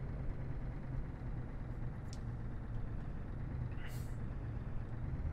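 A truck engine hums low and steady from inside the cab.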